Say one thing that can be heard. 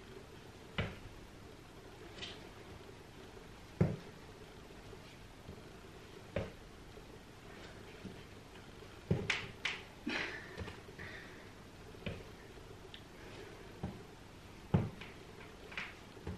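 Feet thud and shuffle on a floor mat.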